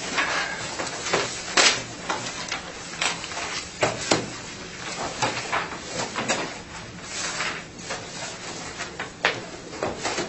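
Papers rustle and shuffle close by.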